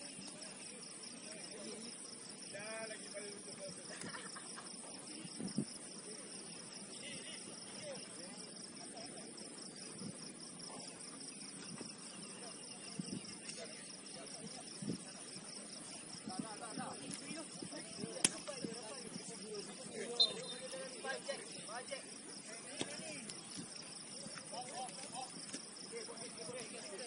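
Young men shout and call to each other across an open pitch, far off.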